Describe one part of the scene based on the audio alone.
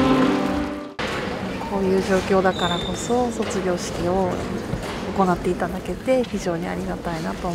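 A woman speaks softly and emotionally close to a microphone.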